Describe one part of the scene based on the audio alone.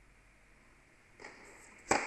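A racket strikes a tennis ball hard on a serve.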